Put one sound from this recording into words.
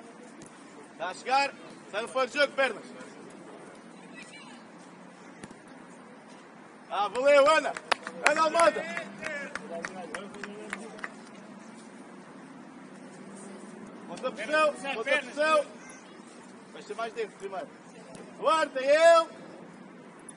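Young boys shout across an open field outdoors.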